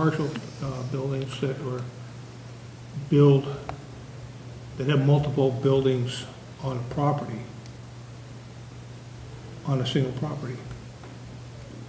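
A man speaks calmly through a microphone in bursts, with pauses.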